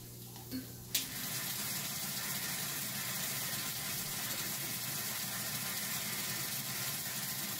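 Water rushes steadily through a hose.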